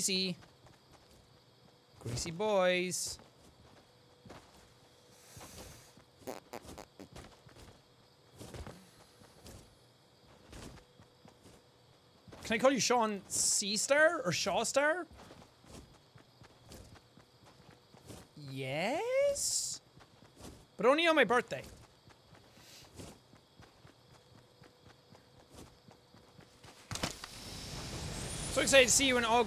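Footsteps patter quickly as a figure runs.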